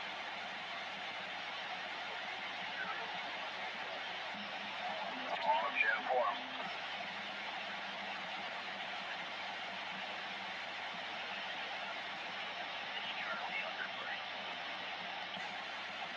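Static hisses steadily from a radio loudspeaker.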